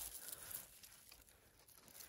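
Dry grass stems rustle and crackle as a hand pulls at them.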